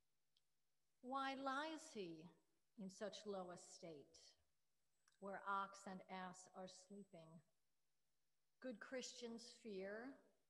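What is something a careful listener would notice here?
A woman reads aloud calmly through a microphone, in pauses.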